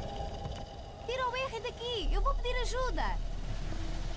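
A young girl shouts urgently.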